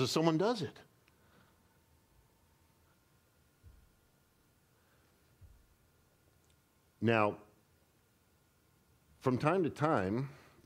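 A man speaks slowly and deliberately into a microphone, with long pauses.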